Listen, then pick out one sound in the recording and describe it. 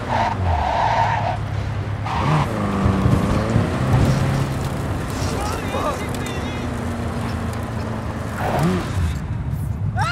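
A van engine hums steadily as it drives.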